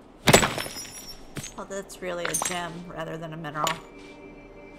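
Magical chimes sparkle and twinkle.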